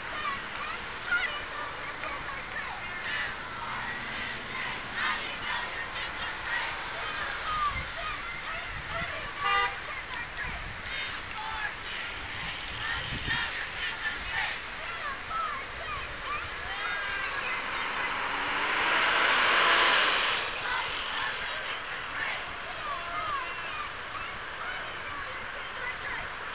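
A crowd of protesters chants and shouts outdoors in the distance.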